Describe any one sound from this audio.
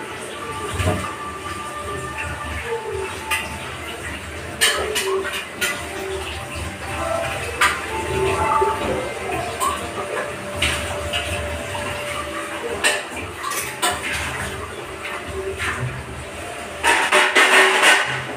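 Utensils clink and clatter on a counter.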